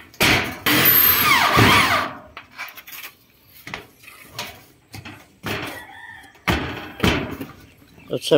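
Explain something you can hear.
Metal roofing sheets clatter and bang.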